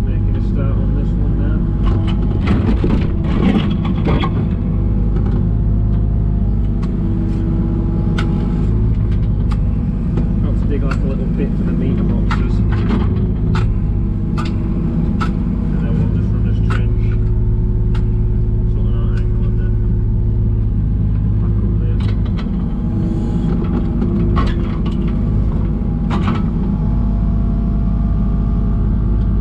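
Hydraulics whine as an excavator arm moves.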